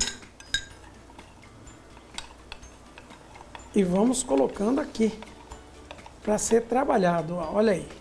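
A spoon clinks and scrapes against a glass jug as it stirs.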